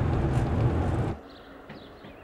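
An open car's engine roars as it drives along.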